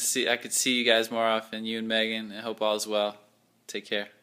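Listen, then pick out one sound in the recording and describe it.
A young man talks with animation close to a phone microphone.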